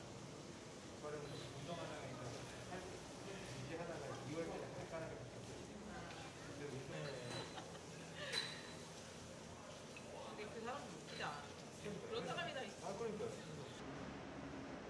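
Hands squish and slosh through wet grain in a basin of water.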